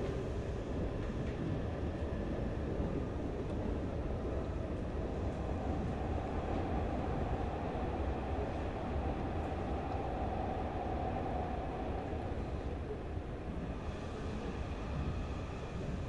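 A train rumbles steadily as it rolls along.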